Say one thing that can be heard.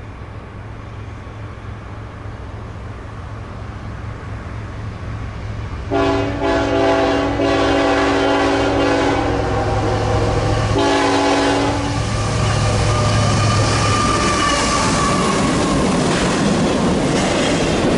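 A freight train's diesel engine rumbles closer.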